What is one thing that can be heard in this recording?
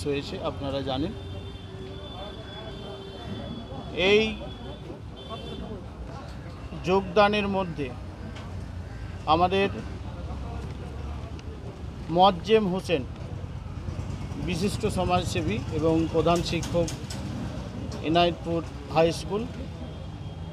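A middle-aged man speaks close to a microphone in a raised, emphatic voice, with pauses between phrases.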